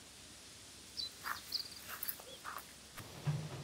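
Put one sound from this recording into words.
Footsteps in sandals walk over grass.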